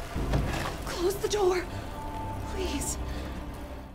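A woman calls out urgently.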